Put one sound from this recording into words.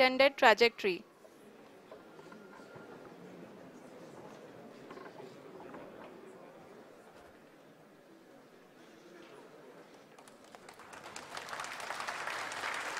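A crowd murmurs quietly in a large room.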